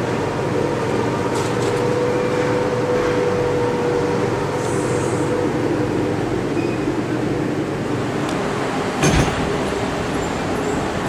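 A subway train rumbles along steadily with a droning whine.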